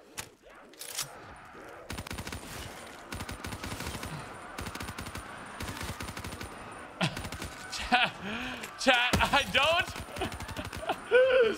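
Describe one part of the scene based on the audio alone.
Rapid gunfire rattles on and on.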